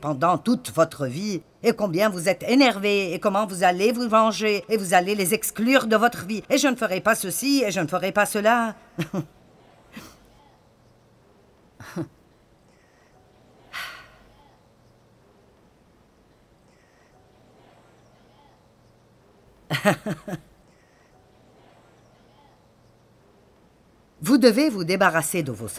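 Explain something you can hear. A middle-aged woman speaks calmly and clearly into a microphone, with pauses between phrases.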